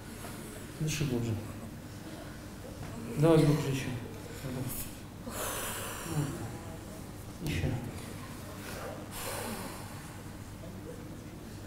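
A man speaks calmly through a head microphone in a large room.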